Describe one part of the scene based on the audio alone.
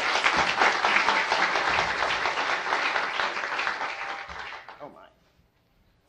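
An audience applauds in a hall, then the clapping fades.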